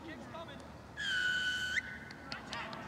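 A referee's whistle blows a sharp, long blast.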